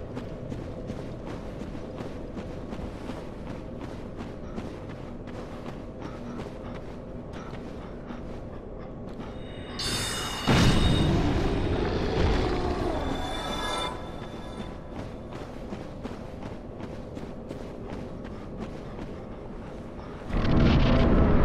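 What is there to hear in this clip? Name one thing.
Armoured footsteps crunch steadily on gravel.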